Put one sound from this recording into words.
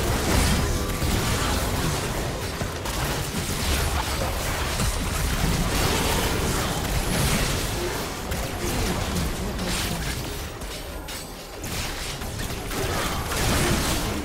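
Magic spell blasts burst and crackle in rapid succession.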